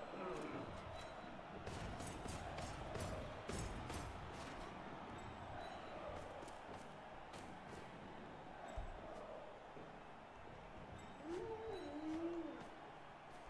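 Armoured players thud and clash together.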